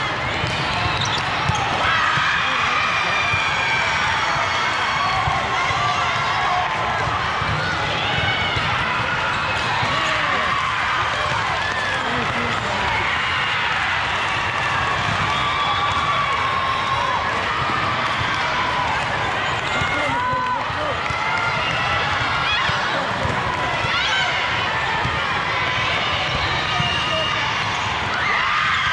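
Young women call out and shout to each other on the court.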